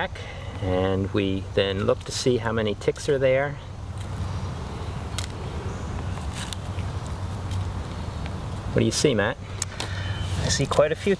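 An older man speaks calmly and with animation close by, outdoors.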